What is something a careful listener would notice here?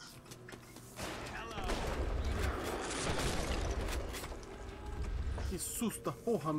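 A shotgun fires with loud, booming blasts.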